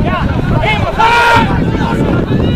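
A referee's whistle blows sharply once.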